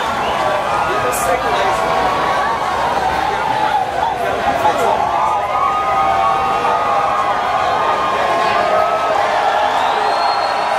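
A band plays amplified music loudly in a large open-air space.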